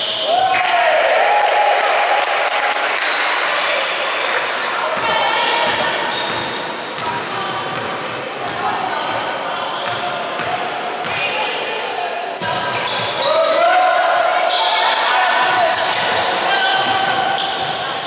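Sneakers squeak sharply on a hard court in a large echoing hall.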